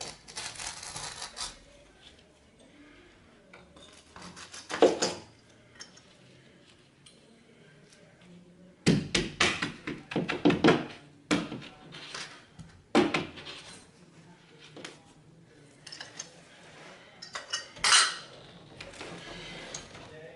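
Tools knock against a wall close by.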